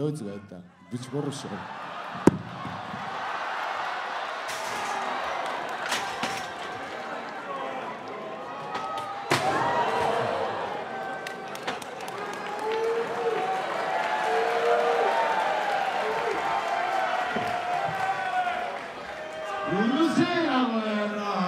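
A large crowd cheers and shouts in an echoing hall.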